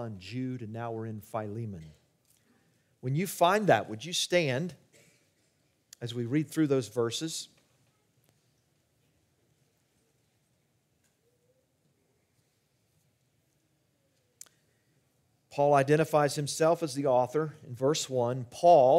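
An older man speaks calmly into a microphone, with long pauses.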